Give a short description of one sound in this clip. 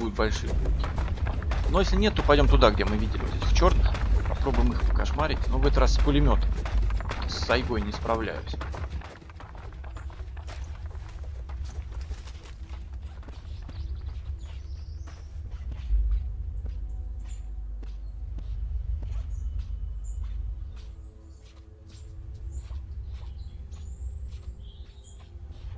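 Footsteps crunch through dry grass and undergrowth.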